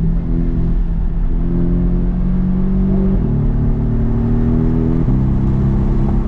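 A car engine roars loudly from inside the cabin, climbing in pitch and dropping sharply with each gear change.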